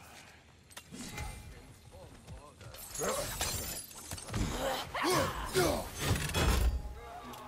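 Blows thud and clash in a close fight.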